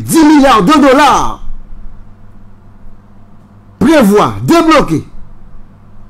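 A man speaks loudly and with animation into a close microphone, in short bursts.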